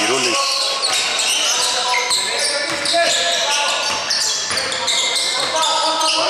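Sneakers squeak sharply on a hardwood court, echoing in a large hall.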